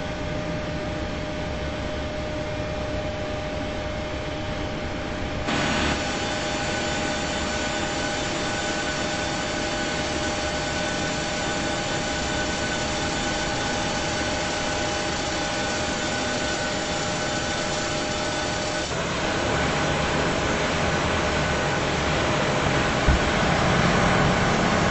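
A jet aircraft's engines hum steadily with a high whine.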